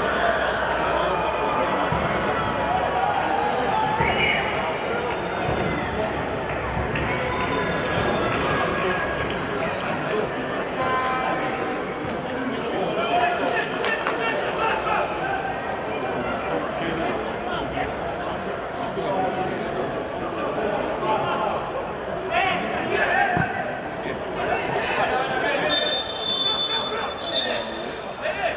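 Football players shout to each other across an open pitch outdoors.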